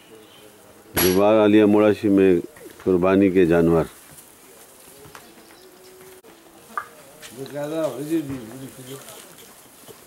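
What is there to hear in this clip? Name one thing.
A calf bleats loudly several times.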